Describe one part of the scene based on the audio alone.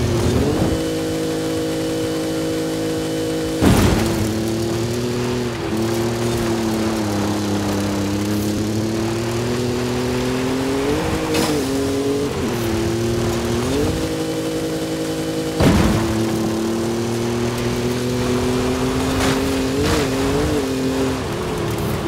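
A car engine hums steadily, its pitch rising and falling as the car speeds up and slows down.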